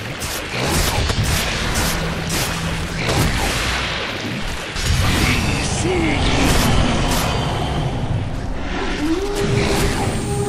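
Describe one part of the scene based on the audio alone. Magic spells crackle and blast as game characters fight.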